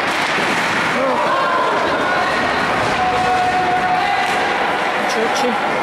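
Players shout to each other across an echoing rink.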